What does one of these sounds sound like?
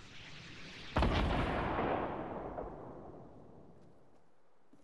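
A rifle fires a single loud shot that booms and slowly echoes away.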